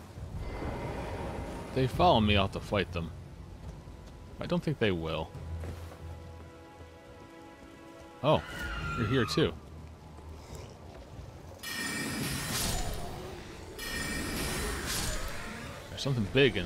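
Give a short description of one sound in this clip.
A magic spell bursts with a shimmering whoosh.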